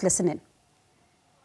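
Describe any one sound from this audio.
A woman speaks briefly and is cut off.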